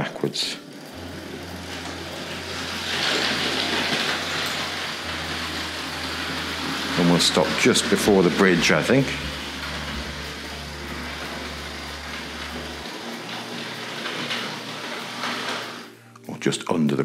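A model train rumbles steadily along its track.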